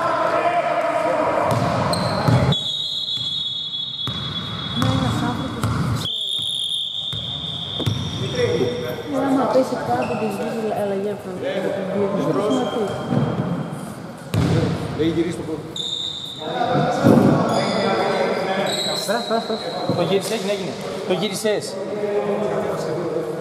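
Men talk and call out casually in a large echoing hall.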